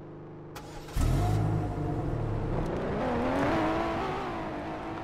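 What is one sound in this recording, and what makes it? A car engine hums and rises as a car drives away.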